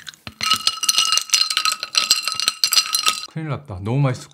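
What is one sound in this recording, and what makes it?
Ice cubes clink and rattle against a glass as a straw stirs a fizzy drink.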